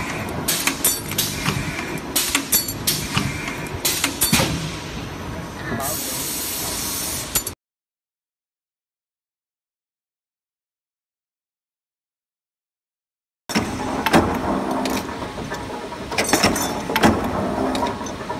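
Machinery hums and rattles loudly.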